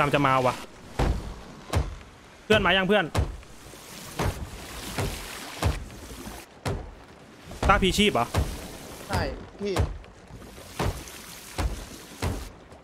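A hammer knocks on wood in sharp, repeated blows.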